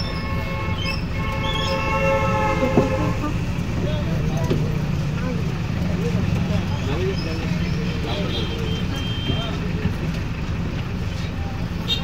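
A motorbike passes close by.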